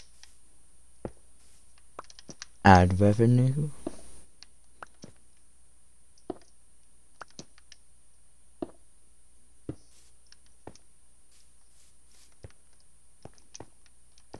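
A pickaxe chips at stone blocks with short, crunching knocks.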